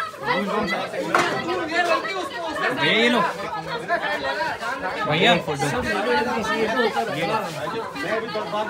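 Several men talk loudly and animatedly close by.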